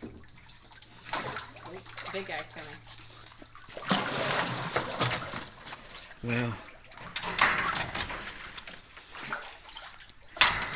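Water splashes and sloshes as an alligator swims.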